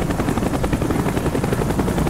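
A helicopter's rotor roars nearby.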